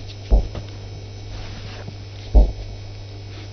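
An elderly man blows his nose into a handkerchief.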